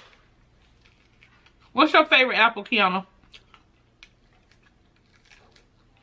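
Crispy fried chicken crunches as it is bitten and chewed.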